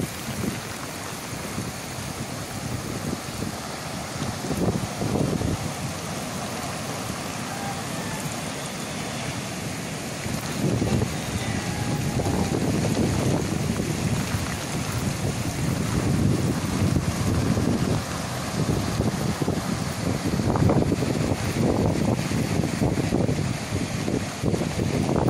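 Heavy rain patters steadily.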